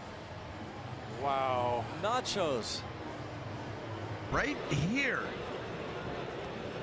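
A crowd murmurs and cheers in a large open stadium.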